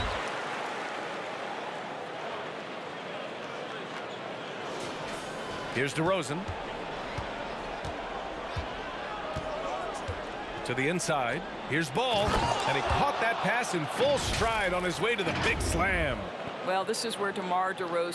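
A large crowd cheers and murmurs in an echoing arena.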